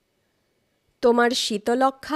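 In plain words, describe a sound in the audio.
A woman speaks in a clear, drawn-out voice, close to a microphone.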